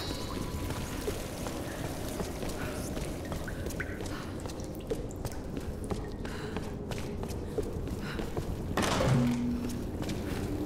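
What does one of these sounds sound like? Footsteps crunch slowly over rough ground.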